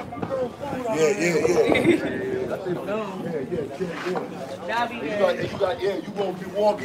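Several men talk loudly and excitedly close by, outdoors.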